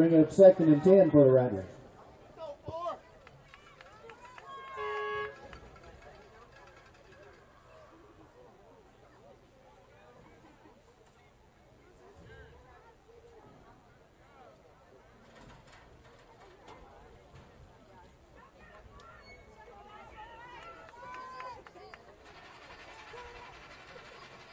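Players and spectators call out and chatter at a distance outdoors.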